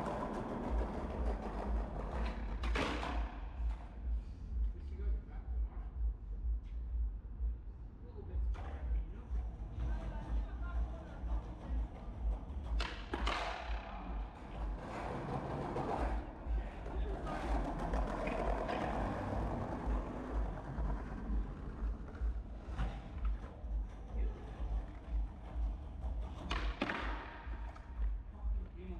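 Skateboard wheels roll and rumble over paving stones.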